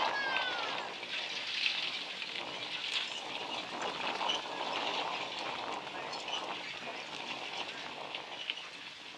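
Horse hooves trot on dirt.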